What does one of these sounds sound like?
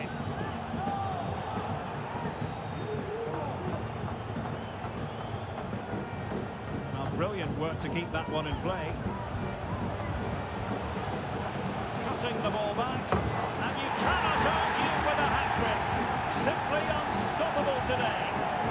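A stadium crowd roars steadily, swelling into loud cheering.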